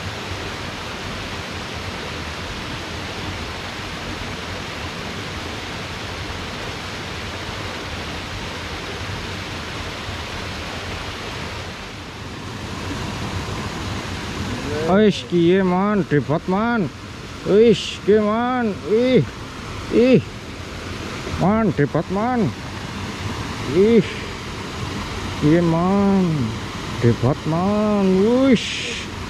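Water rushes steadily over a small weir.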